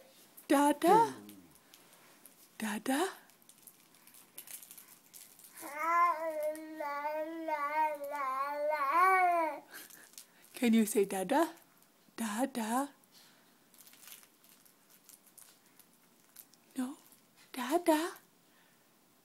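A baby coos and babbles loudly close by.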